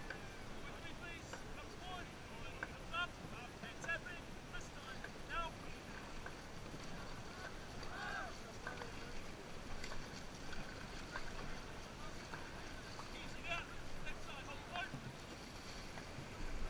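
Water rushes steadily along a boat's hull.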